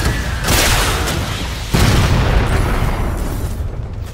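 A gun fires loud shots.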